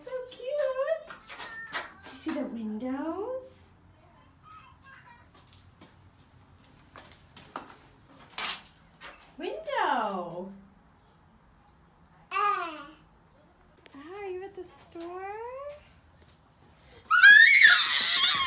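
A young toddler babbles and squeals close by.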